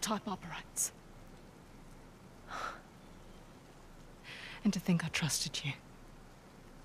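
A woman speaks coldly and bitterly, close by.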